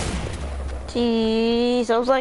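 A game tune plays with a rising and falling melody.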